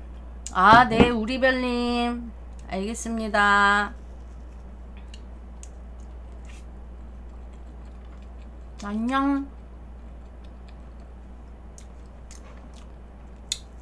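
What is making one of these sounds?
Cutlery clinks lightly against a plate.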